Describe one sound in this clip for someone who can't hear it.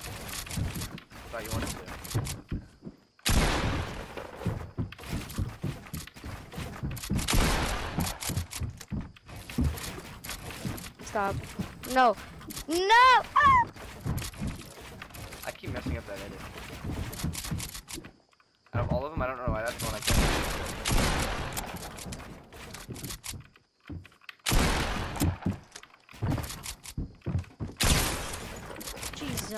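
Wooden walls and ramps snap into place with rapid clacks and thuds.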